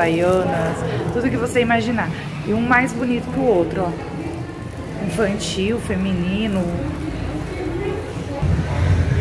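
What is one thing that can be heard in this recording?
A young woman talks close to the microphone with animation.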